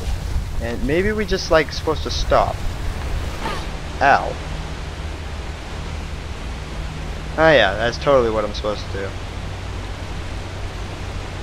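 Steam hisses steadily from vents.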